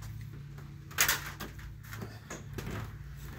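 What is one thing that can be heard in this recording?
A metal door latch clicks and rattles.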